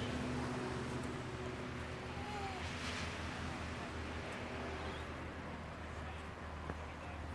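Wind rustles through leaves outdoors.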